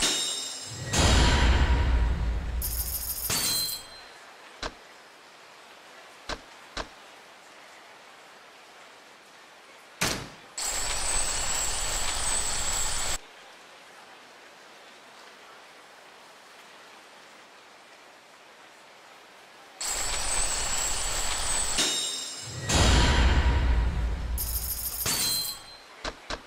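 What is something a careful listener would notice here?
A game chimes with a loud swelling flourish.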